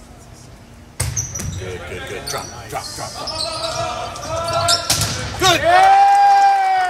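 A volleyball is struck with loud smacks.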